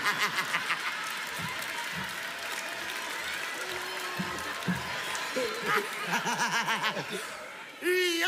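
A large audience laughs and applauds in a big hall.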